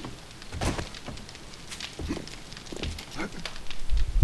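Footsteps thud on hollow wooden boards.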